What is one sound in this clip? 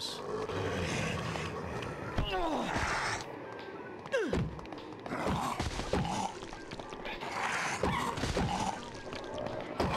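Zombies moan and groan nearby.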